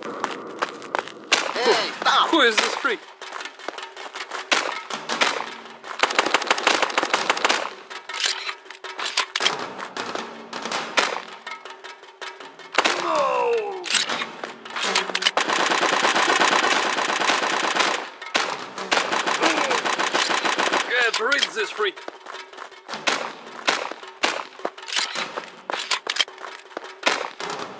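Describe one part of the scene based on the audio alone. Pistol shots crack out one after another.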